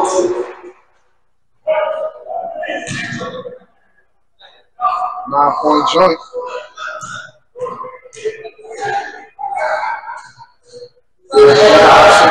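Men talk and call out nearby in an echoing gym.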